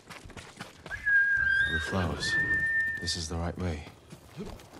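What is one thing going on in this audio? A horse whinnies loudly nearby.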